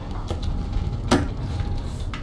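A wooden box lid snaps shut.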